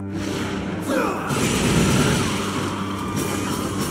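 Magic blasts whoosh and crackle.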